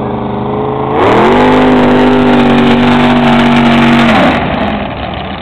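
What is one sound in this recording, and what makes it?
A powerboat roars past close by, loud and sudden, then fades.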